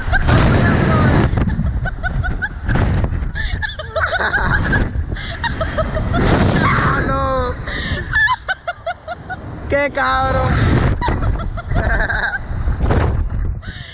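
A young man laughs and shouts close by.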